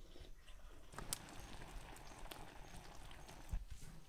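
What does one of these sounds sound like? A fire crackles under a pan.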